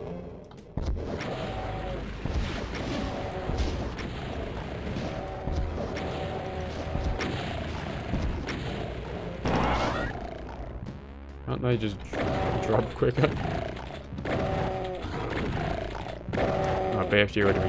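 Monsters roar and growl.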